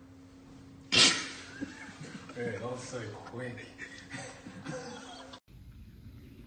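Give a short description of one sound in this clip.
A man talks and laughs.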